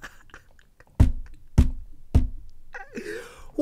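A young man laughs loudly into a close microphone.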